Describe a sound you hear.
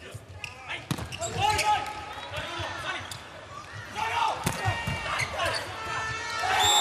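Sports shoes squeak on the court floor.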